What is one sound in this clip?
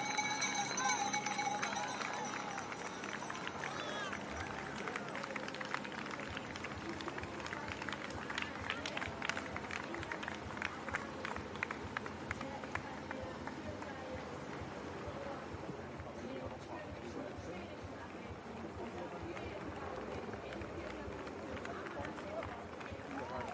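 Runners' footsteps patter on the road.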